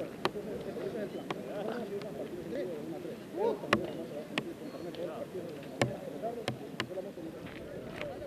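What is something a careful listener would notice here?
Several young men talk quietly nearby, outdoors.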